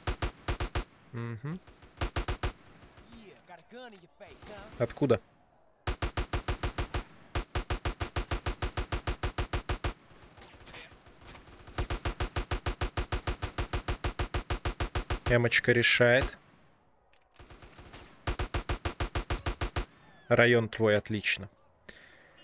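A rifle fires in rapid bursts of sharp shots.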